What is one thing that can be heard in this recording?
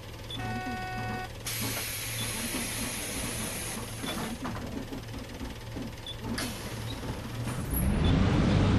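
A bus engine idles steadily.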